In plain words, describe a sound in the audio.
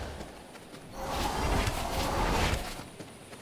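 A magical whooshing rush swells and fades.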